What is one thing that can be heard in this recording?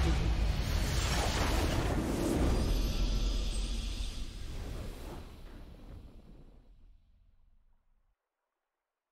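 A grand orchestral fanfare swells and then slowly fades away.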